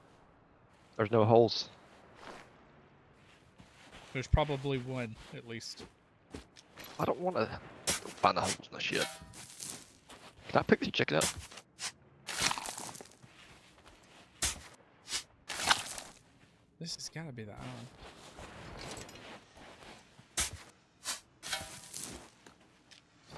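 A man talks with animation into a headset microphone, close by.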